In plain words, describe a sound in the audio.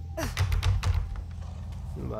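A locked wooden door rattles as someone tries to open it.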